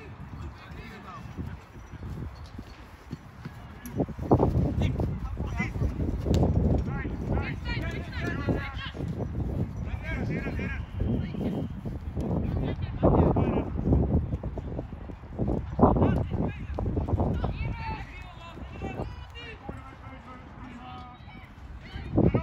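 Young male players shout to each other outdoors.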